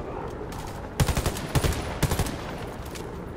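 A rifle fires quick bursts of shots.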